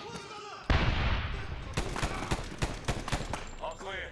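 Rapid gunshots crack and echo.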